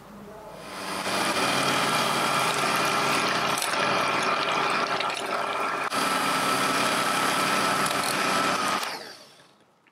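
An electric hand mixer whirs loudly and steadily.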